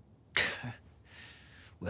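A young woman asks a question calmly.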